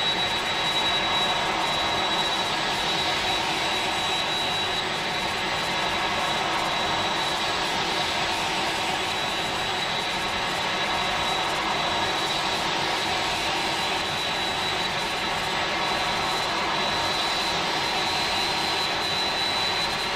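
Jet engines roar steadily as an airliner climbs.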